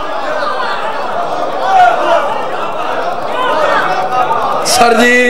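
A crowd of men chants loudly together in an echoing hall.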